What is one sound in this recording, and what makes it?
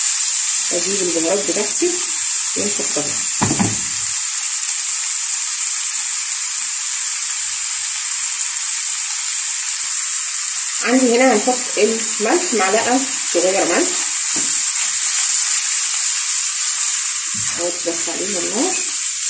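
A spatula scrapes and stirs food in a pan.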